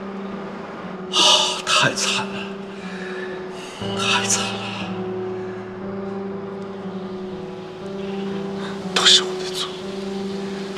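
A middle-aged man speaks sadly and haltingly.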